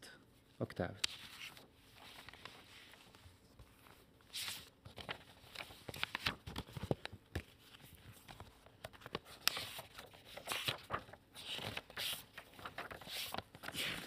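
Paper sheets rustle as pages are turned.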